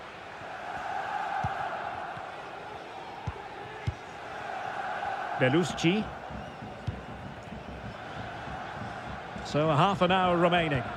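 A stadium crowd roars and murmurs.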